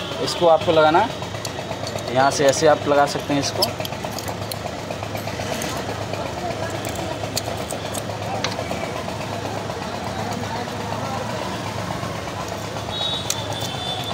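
Metal tools click and scrape against engine parts.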